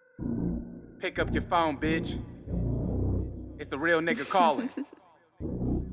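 A young man raps energetically.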